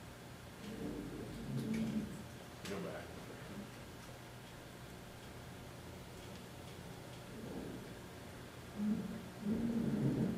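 A young man speaks in a room, heard from a short distance.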